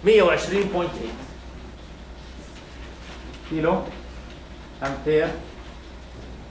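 A man speaks in short phrases, calmly, as if explaining.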